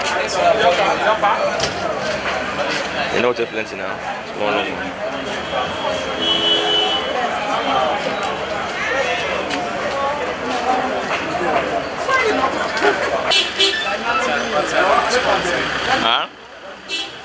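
A busy street crowd chatters all around.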